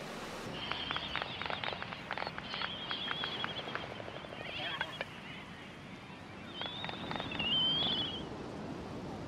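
Many seabirds call across a large colony.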